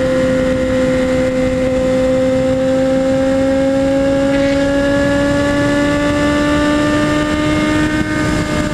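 Wind roars past the rider at high speed.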